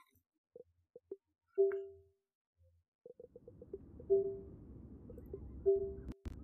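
Soft interface clicks tick in quick succession.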